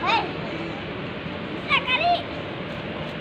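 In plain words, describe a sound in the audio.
A young child squeals and babbles nearby.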